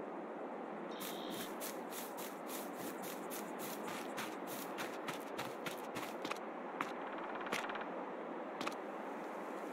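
Footsteps crunch on grass and dirt, then thud on wooden boards.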